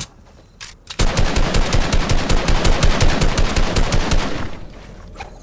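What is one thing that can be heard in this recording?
Building pieces snap rapidly into place with quick clattering knocks.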